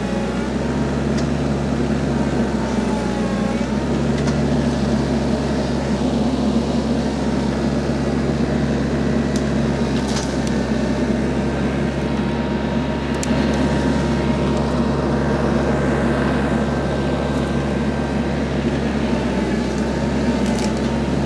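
A mower behind a tractor whirs as it cuts through brush.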